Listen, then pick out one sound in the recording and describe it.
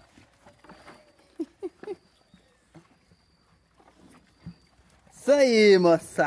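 Dogs eat noisily from a plastic bucket.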